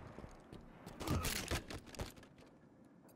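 Gunfire bursts out in short rapid shots.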